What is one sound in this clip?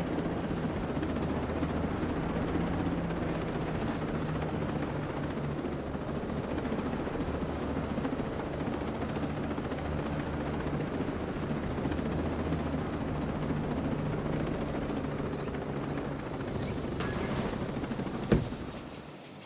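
A helicopter's engine drones low and steady.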